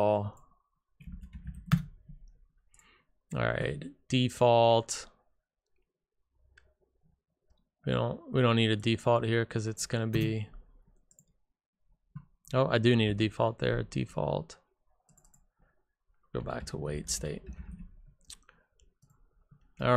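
A man talks calmly and closely into a microphone, in bursts with pauses.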